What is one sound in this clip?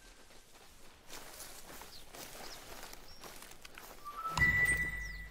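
Footsteps rustle through dry undergrowth.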